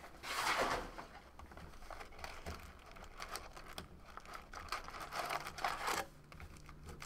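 Cards and packs tap and knock against a box.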